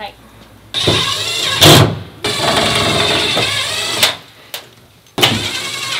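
A cordless drill whirs in short bursts, driving screws.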